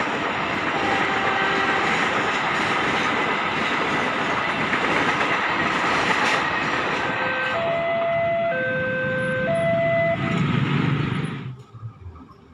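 A passenger train rumbles and clatters past on the tracks close by.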